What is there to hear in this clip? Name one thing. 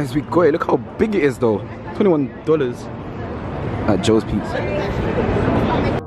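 A crowd of people chatters outdoors on a busy street.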